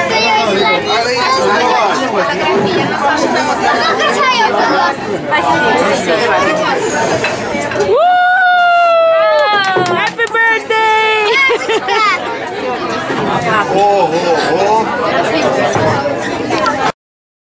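A woman talks cheerfully nearby.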